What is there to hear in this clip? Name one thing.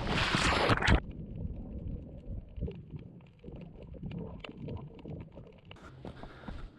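Bubbles gurgle underwater.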